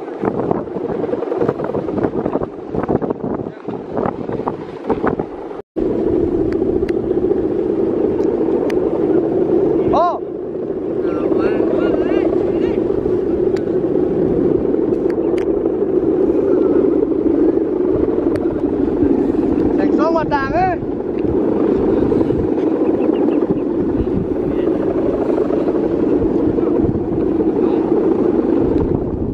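A kite's bow hummer drones steadily in the wind overhead.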